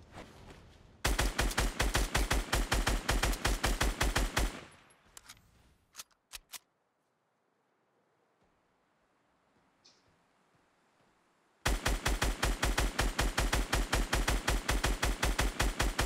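An automatic gun fires rapid shots in long bursts.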